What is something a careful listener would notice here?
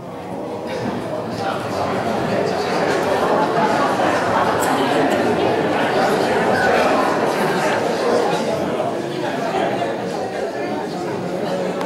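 An older woman speaks calmly to an audience in an echoing hall.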